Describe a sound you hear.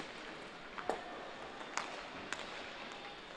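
Curling stones clack against each other on the ice.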